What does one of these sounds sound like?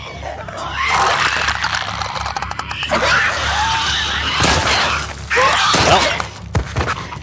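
A pistol fires several loud shots.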